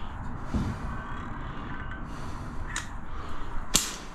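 A caulking gun clicks as its trigger is squeezed.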